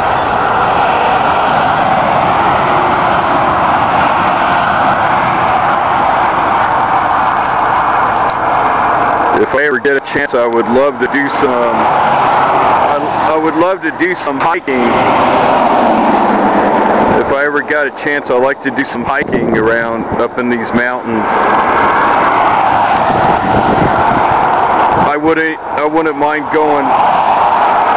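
Tyres hum and wind rushes steadily from inside a moving vehicle.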